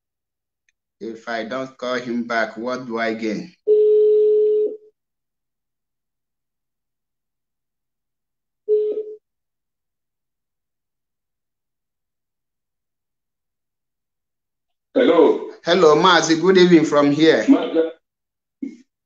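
A man speaks in short bursts over an online call.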